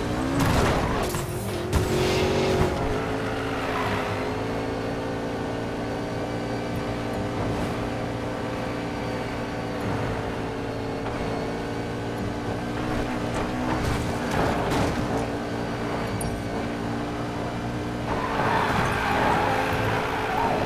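Tyres screech as a car drifts around bends.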